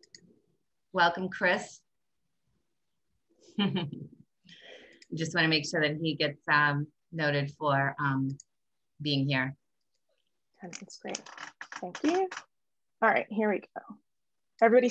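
A woman speaks calmly over an online call.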